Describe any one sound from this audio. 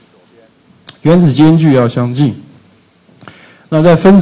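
An older man lectures through a microphone in a large room.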